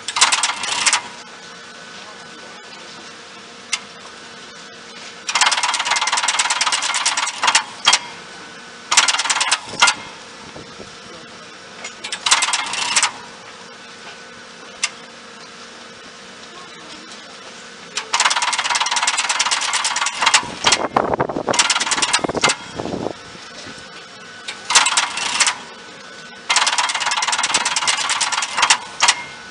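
Contactors in an electric train's control unit click and buzz in bursts.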